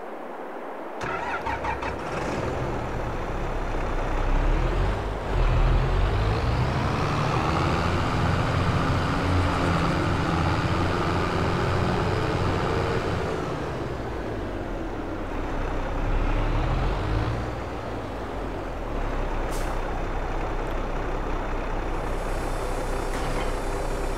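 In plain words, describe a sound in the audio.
A tractor engine rumbles and revs as the tractor drives off.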